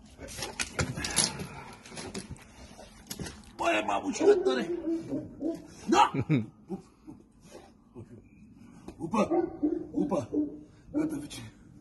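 A dog whines excitedly.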